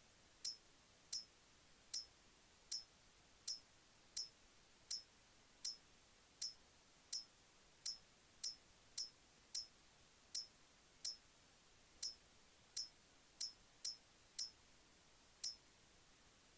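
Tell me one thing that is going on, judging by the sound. Short, sharp menu clicks tick quickly, one after another.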